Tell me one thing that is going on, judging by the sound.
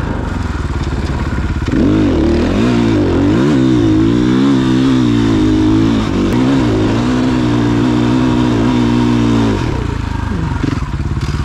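A dirt bike engine revs hard and roars up a steep slope.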